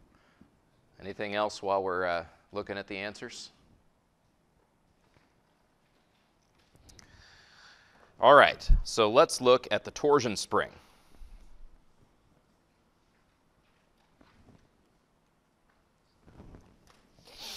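A man lectures through a microphone, speaking calmly with pauses.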